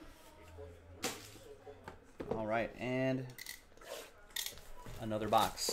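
Plastic wrap crinkles as a box is handled.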